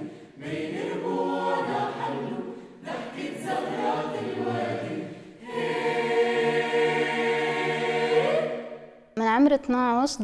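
A choir sings together in a large echoing hall.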